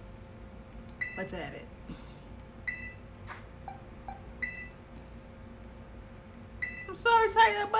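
Short electronic menu chimes beep from a television speaker.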